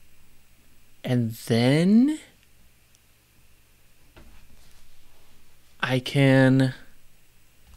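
A middle-aged man speaks calmly and briefly into a close microphone.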